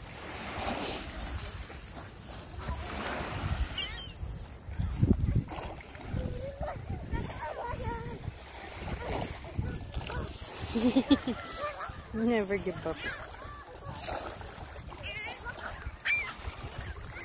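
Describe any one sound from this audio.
Gulls call over the water.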